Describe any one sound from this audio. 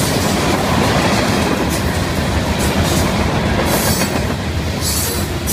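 Steel wheels clack and squeal on the rails.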